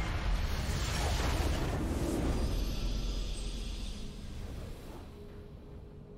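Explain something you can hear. A loud, deep explosion booms and fades.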